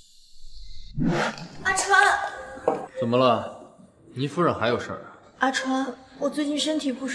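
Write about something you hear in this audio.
A young woman speaks with emotion.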